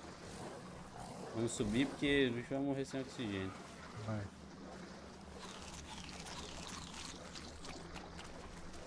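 Water swirls and splashes as an animal swims.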